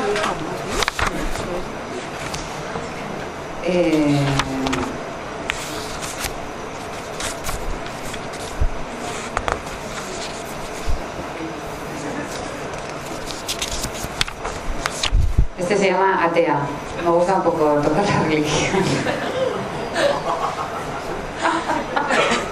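A woman speaks with animation into a microphone, heard through a loudspeaker in a room.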